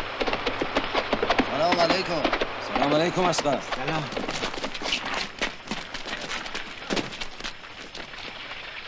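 Horse hooves clatter on dirt.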